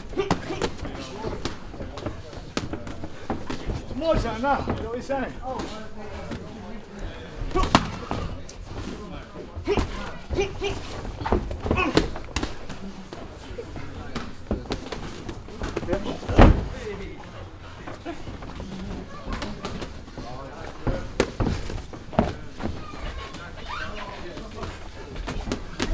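Shins thump hard against padded gloves.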